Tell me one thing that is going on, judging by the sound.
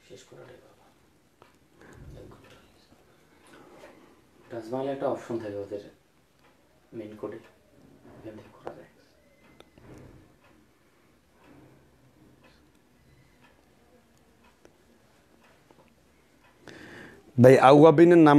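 A man speaks calmly and close to the microphone, with pauses.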